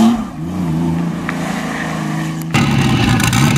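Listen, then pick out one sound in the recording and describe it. A car engine hums steadily as a car drives slowly around a bend.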